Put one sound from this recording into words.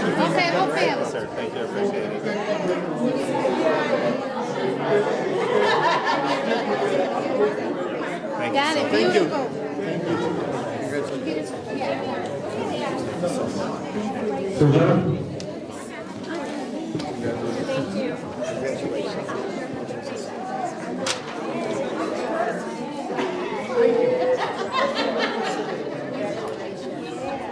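Men and women chat and murmur together in a room.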